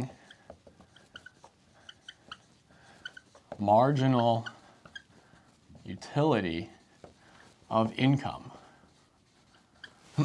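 A marker squeaks and taps against a whiteboard.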